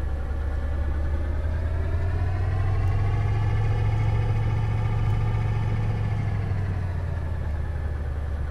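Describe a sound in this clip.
A diesel engine revs up, then settles back down.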